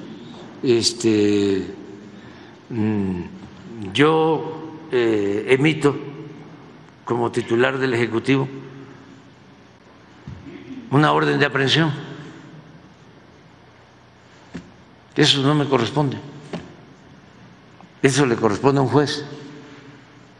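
An elderly man speaks slowly into a microphone in bursts, with pauses, in an echoing hall.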